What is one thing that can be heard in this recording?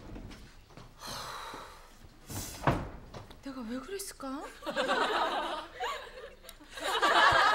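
A middle-aged woman speaks nearby.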